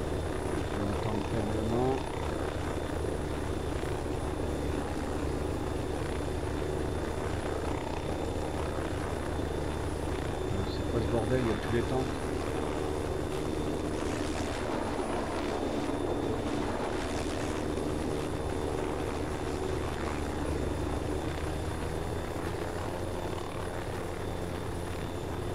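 A helicopter engine drones steadily.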